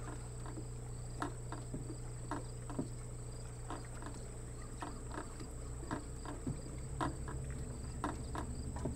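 Rain falls steadily on trees outdoors.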